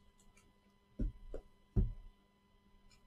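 Gloved hands set a cardboard box down on a table with a soft thud.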